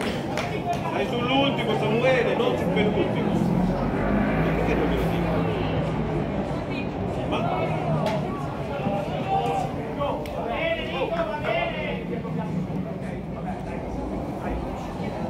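Spectators nearby talk and murmur.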